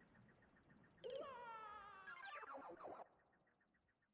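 A buzzy, rising game sound effect plays, then falls off.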